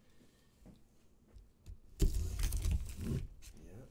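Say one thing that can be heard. A knife slices through packing tape.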